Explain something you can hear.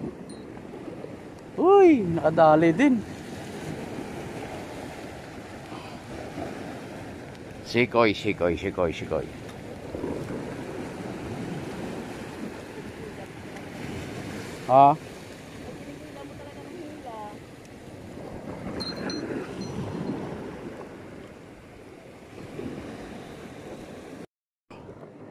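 Waves wash and break against rocks.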